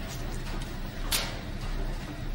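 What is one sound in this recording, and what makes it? A coin clicks down onto a metal surface.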